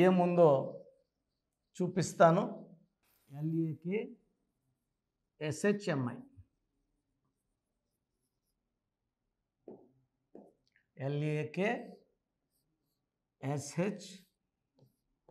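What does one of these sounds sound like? A man speaks in short, calm phrases close to a microphone.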